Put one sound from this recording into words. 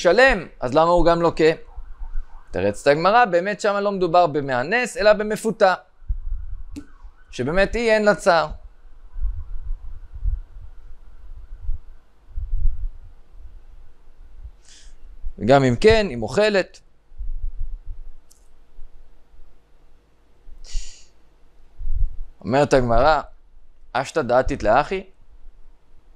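A young man speaks calmly and closely into a microphone, in short phrases with long pauses.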